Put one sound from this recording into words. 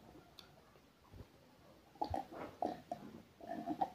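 A young man gulps water from a glass.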